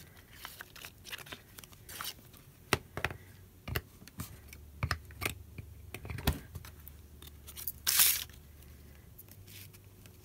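Paper rustles and crinkles in someone's hands.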